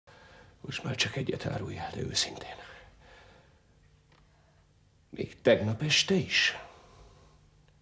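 A man speaks intently, close by.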